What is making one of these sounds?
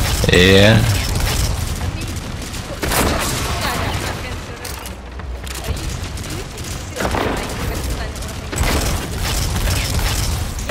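Heavy gunfire blasts in bursts.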